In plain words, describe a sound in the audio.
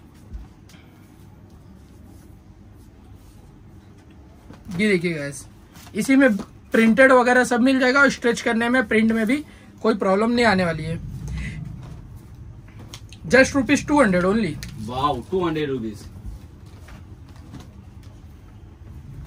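Cloth rustles as shirts are handled and folded.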